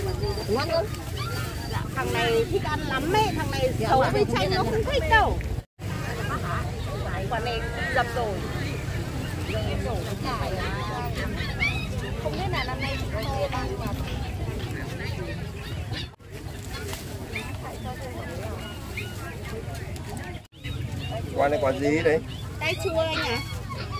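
A young woman talks cheerfully up close.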